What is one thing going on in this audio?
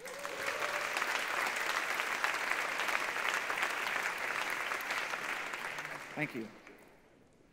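A large audience applauds.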